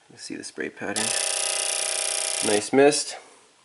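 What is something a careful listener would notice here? A fuel injector buzzes steadily.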